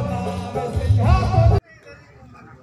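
Loud live music with keyboard plays on a stage.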